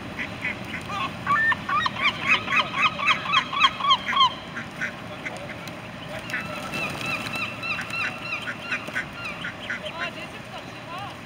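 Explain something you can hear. Mallard ducklings peep in quick runs of high calls.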